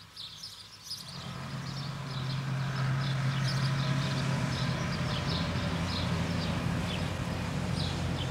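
A bus engine rumbles steadily as the bus drives closer.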